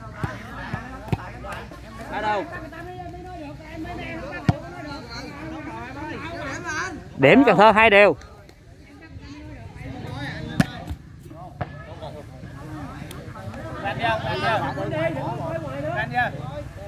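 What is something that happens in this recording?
A crowd of men chatters and calls out outdoors.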